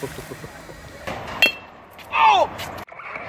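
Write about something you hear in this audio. A baseball bat cracks against a ball outdoors.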